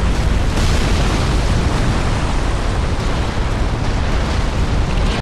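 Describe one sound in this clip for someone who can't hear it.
A steady, deep roar of fire rumbles with crackling embers.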